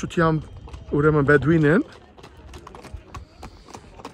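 A horse's hooves clop on a gravel road.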